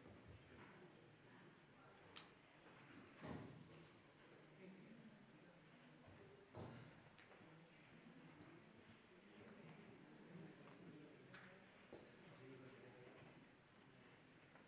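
A man speaks calmly, heard through a microphone in an echoing hall.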